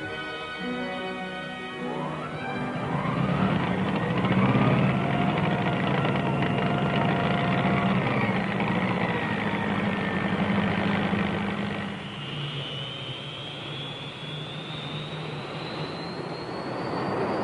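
A ground power cart engine runs.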